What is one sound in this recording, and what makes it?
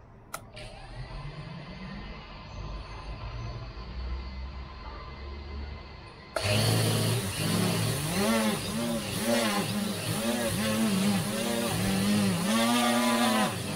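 Small drone propellers whir close by, their whine rising and falling as the motors rev up and down.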